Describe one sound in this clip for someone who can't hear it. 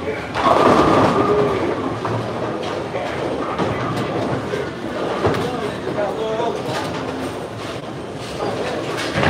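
Many people chatter in a large, echoing hall.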